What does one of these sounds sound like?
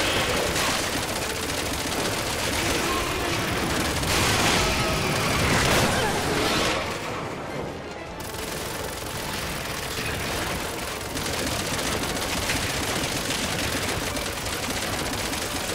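A monstrous creature roars and shrieks.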